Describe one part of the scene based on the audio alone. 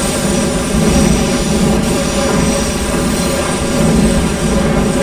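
A subway train rumbles steadily along the rails through a tunnel.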